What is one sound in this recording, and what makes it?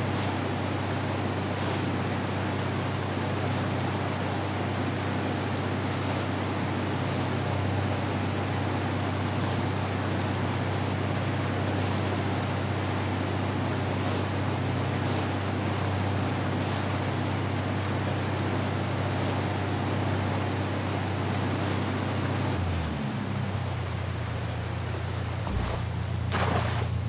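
Water splashes and rushes against a speeding boat's hull.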